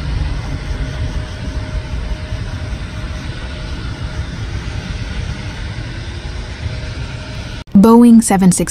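A jet airliner's engines roar as it rolls down a runway.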